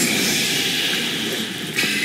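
Explosions burst with fiery blasts.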